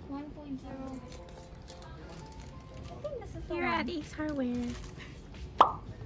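Plastic packaging crinkles in a hand.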